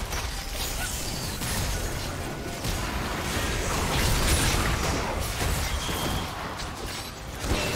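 Magic spells whoosh and burst in a busy fight.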